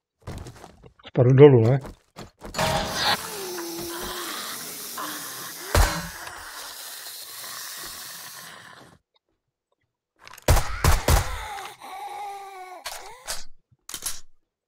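A man talks with animation into a microphone.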